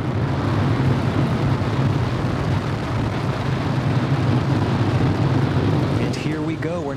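A rocket engine roars with a steady deep rumble.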